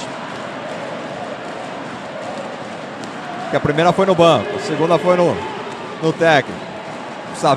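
A large indoor crowd murmurs steadily in an echoing arena.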